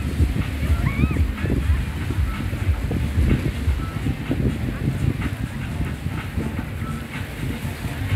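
Wind buffets outdoors, rumbling steadily.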